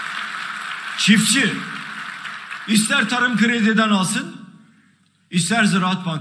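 An elderly man speaks forcefully through a microphone in a large hall.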